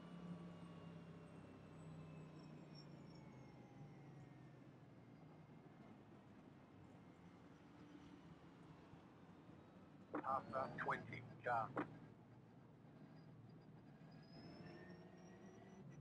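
A race car engine drones steadily at low speed.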